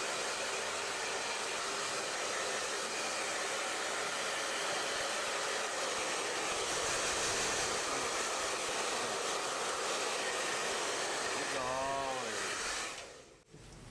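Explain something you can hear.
A hair dryer blows with a loud, steady roar, then switches off.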